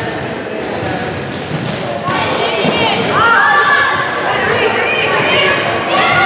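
A volleyball thumps off hands.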